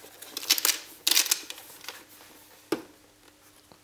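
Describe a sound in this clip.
Hands handle a plastic cassette recorder with rattling and knocking.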